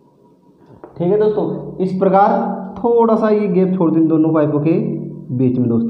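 A man speaks loudly and clearly to a room, as if teaching.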